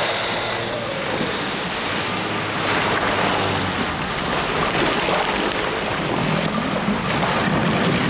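Small waves wash onto a pebble shore.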